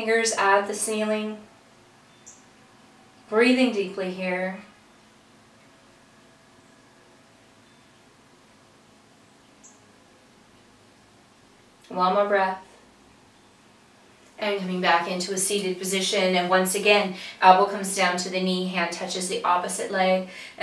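An older woman speaks calmly and clearly close to a microphone, giving instructions with pauses.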